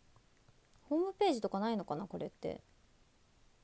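A young woman speaks briefly, close to the microphone.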